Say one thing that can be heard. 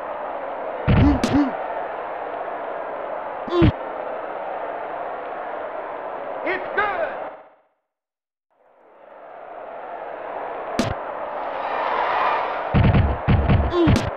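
Football players collide with heavy thuds.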